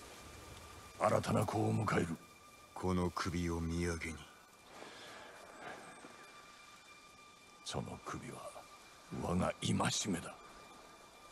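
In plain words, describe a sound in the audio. A man speaks slowly and gravely in a low voice.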